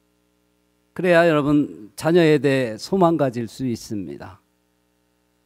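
A middle-aged man speaks with emphasis into a microphone.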